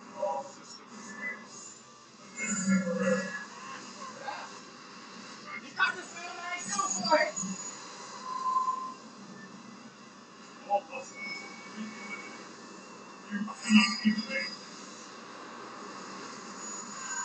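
Video game blasts and hits play through a television speaker, heard from across a room.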